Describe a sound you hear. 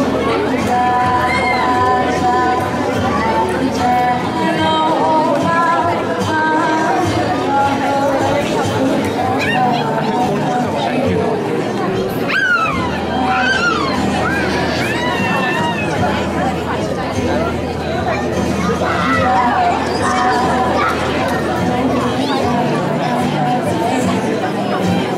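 A young woman sings into a microphone through loudspeakers.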